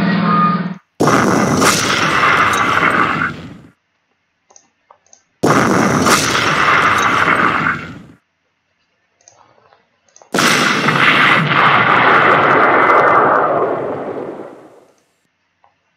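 A tank engine rumbles loudly in several long bursts.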